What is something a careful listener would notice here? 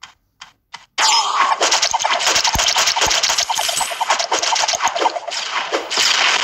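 Mobile game sound effects of arrows shooting and hitting monsters clatter in quick succession.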